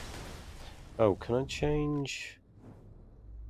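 Electronic chimes ring out.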